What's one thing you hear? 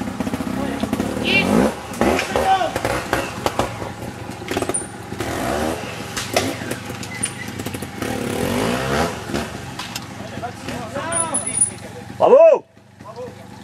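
A motorcycle engine revs and sputters up close.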